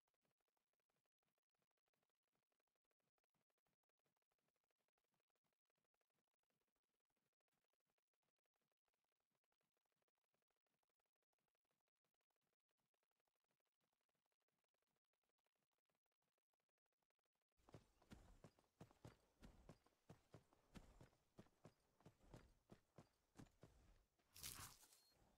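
A horse's hooves clop steadily on stone.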